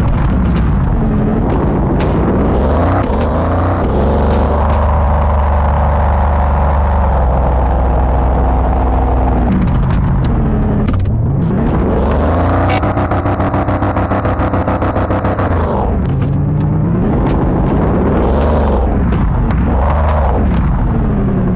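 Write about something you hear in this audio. A car engine hums and revs up and down repeatedly.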